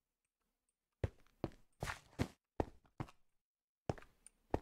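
Footsteps crunch slowly on loose stone.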